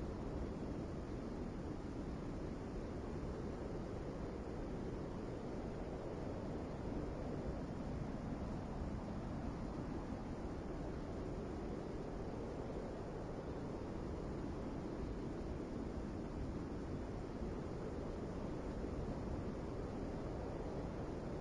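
Water washes along a ship's hull.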